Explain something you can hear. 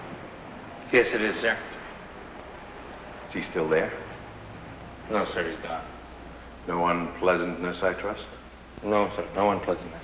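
Another man answers calmly nearby.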